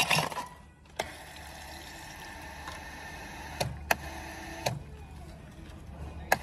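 A drink pours from a dispenser into a paper cup.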